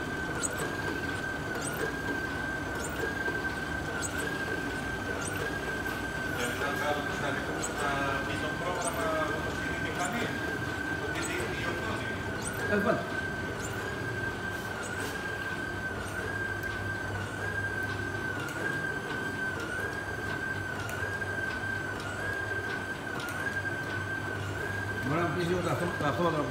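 A printing press clicks in a steady, regular rhythm.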